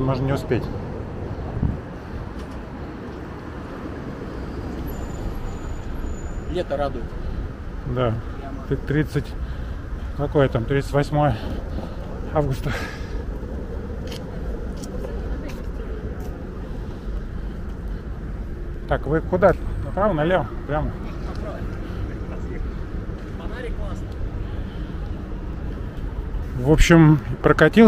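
A man talks nearby, with pauses.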